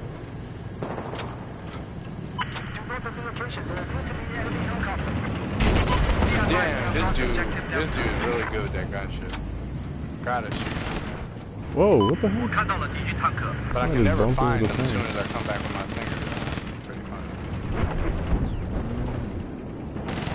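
A heavy vehicle engine rumbles steadily.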